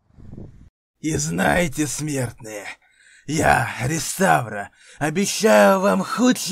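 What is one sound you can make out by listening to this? A man speaks.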